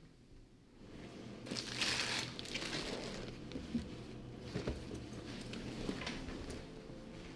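A plastic bag rustles and crinkles as it is handled.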